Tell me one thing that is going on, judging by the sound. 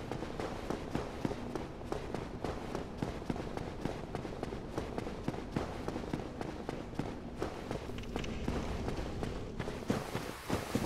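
Armoured footsteps run on stone.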